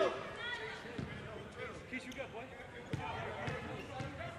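A basketball bounces on a wooden floor in an echoing gym.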